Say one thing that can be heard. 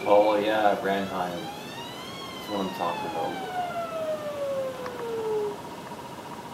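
A video game plays a goal siren that rises and then slowly falls.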